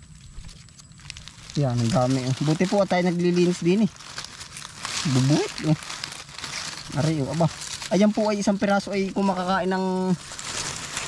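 Dry leaves rustle and crackle as a hand parts them.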